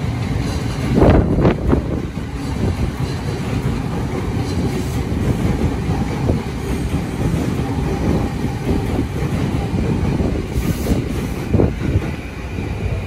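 A train rumbles and clatters past close by.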